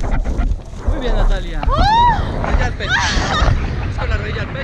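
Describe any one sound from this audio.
A young woman shrieks and squeals with excitement, close by.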